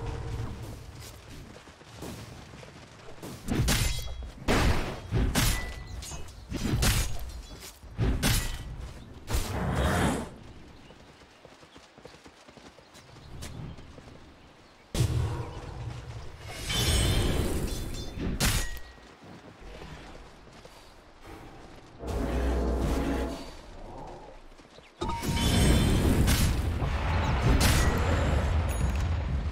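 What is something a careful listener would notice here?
Game fighting effects clash, crackle and boom in short bursts.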